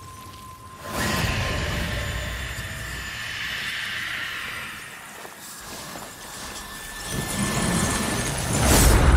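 A magical blast roars and rumbles.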